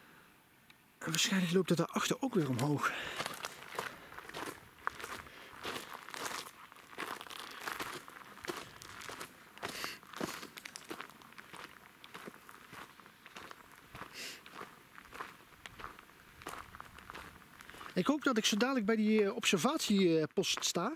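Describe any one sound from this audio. Footsteps crunch and rustle on a forest floor.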